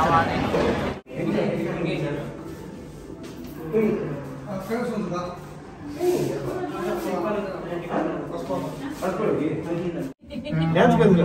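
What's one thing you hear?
A group of men and women chatter together nearby.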